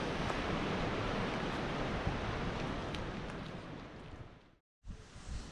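Wind rushes steadily across the microphone outdoors.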